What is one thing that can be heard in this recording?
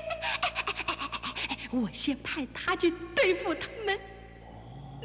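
A woman talks playfully, close by.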